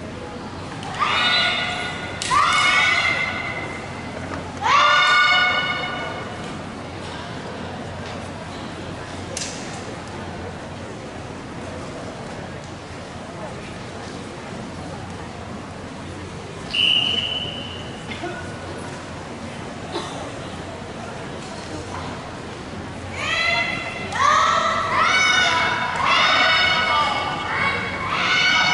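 Young women shout sharp, drawn-out cries in a large echoing hall.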